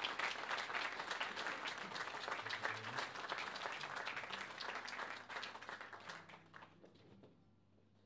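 An audience claps, then the applause fades away.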